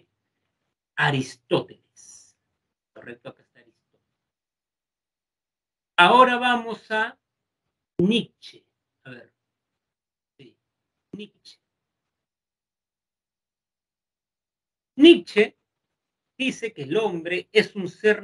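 A young man speaks calmly through an online call microphone, in short bursts with pauses.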